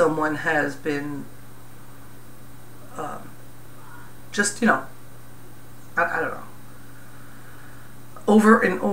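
A middle-aged woman speaks calmly and close by, with pauses.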